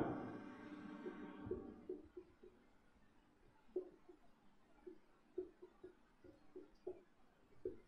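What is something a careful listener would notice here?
A marker squeaks faintly on a whiteboard.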